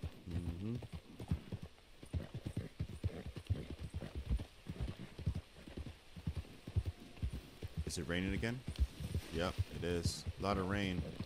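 Horse hooves thud rapidly on soft ground.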